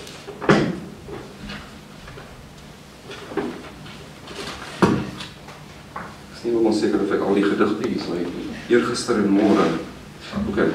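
A man reads aloud calmly into a microphone in an echoing hall.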